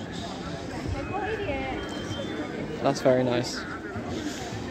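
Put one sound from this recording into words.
A woman and other adults talk casually close by outdoors.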